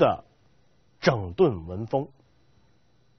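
A man speaks calmly into a microphone, lecturing in a measured voice.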